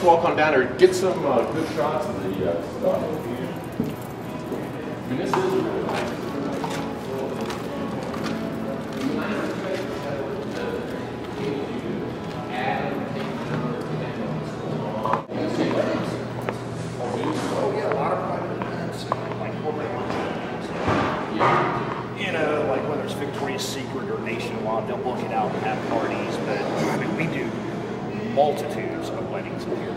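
A middle-aged man talks casually, close by.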